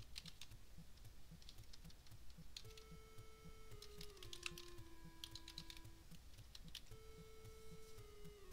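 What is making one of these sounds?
Short electronic blips sound from the game.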